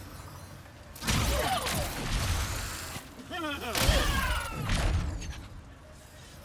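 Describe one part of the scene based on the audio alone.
Electric blasts zap and crackle.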